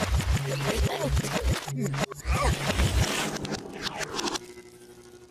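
A noisy scuffle thrashes about in loose sand.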